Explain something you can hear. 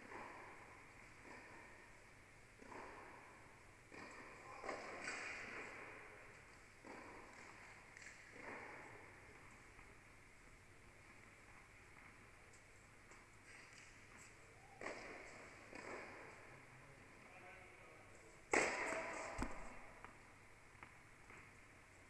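Tennis balls are struck with rackets, echoing in a large indoor hall.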